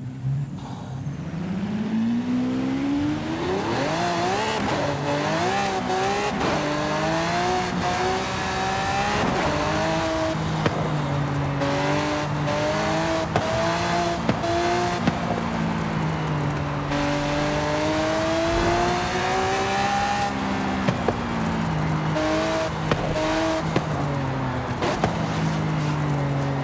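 A sports car engine revs high, rising and falling in pitch through gear changes.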